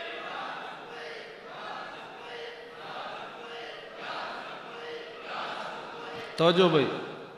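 A large crowd chants together in an echoing hall.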